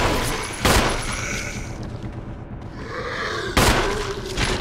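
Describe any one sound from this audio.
A zombie groans and moans nearby.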